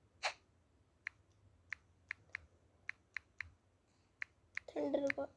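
Soft key clicks tap out in a quick, uneven run.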